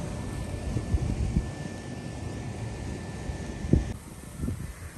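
Wind blows outdoors, buffeting low and steady.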